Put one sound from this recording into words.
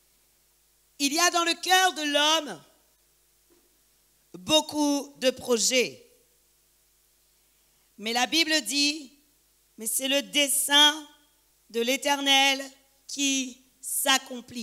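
A woman speaks calmly through a microphone in a large echoing hall.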